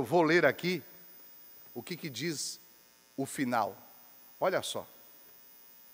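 A man speaks slowly into a microphone, in short phrases.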